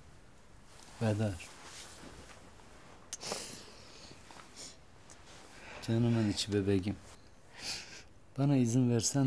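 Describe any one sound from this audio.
A man speaks softly and tenderly close by.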